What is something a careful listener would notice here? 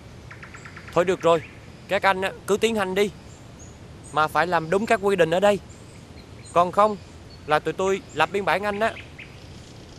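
A man speaks calmly and seriously, close by.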